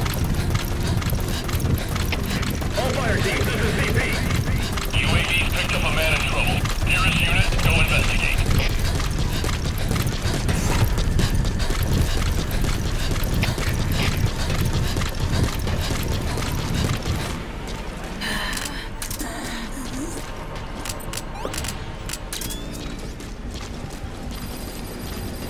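Boots thud quickly on a hard floor as a runner moves along.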